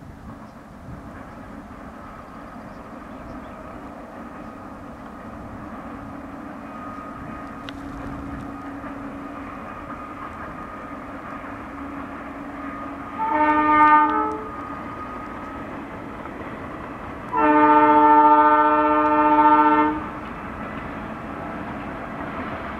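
A diesel locomotive engine rumbles steadily in the distance.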